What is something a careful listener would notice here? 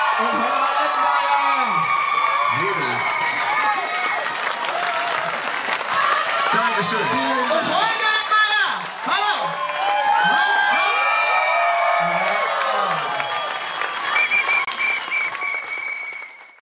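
A large crowd sings along loudly outdoors.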